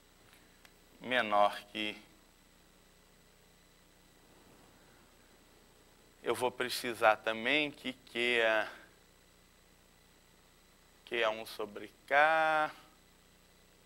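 A man speaks calmly in short bursts, like a lecturer.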